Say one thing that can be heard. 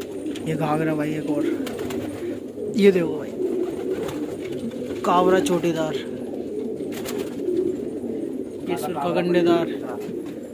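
Pigeons coo softly and steadily close by.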